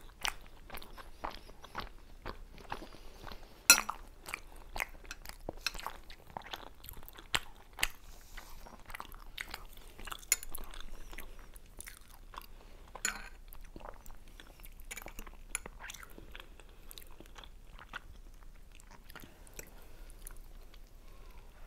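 Two women chew soft food noisily and close to a microphone.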